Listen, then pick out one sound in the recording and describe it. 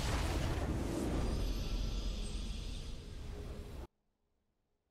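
A triumphant fanfare swells loudly.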